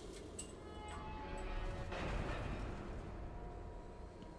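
A heavy metal gate rumbles and whooshes open.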